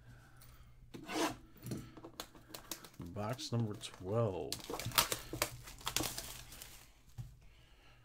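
Cardboard packaging rustles and tears as hands pull a box open.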